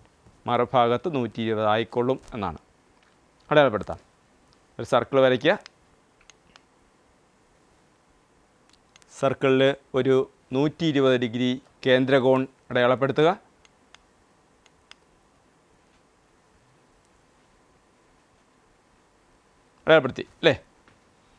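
A man speaks calmly into a close microphone, explaining in short bursts with pauses.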